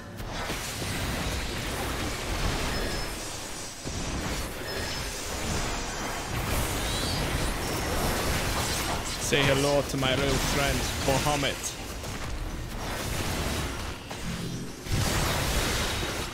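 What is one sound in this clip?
Battle sound effects clash and boom in a video game.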